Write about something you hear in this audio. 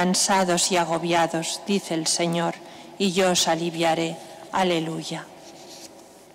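A middle-aged woman reads out calmly through a microphone in a large echoing hall.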